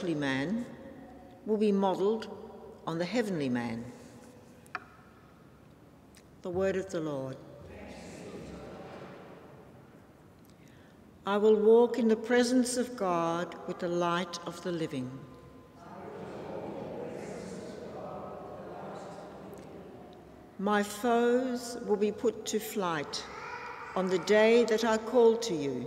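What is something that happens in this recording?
An older woman speaks slowly and clearly into a microphone, with a slight echo of a large room.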